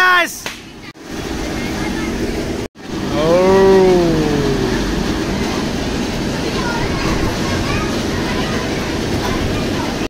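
A mechanical ride's motor whirs steadily.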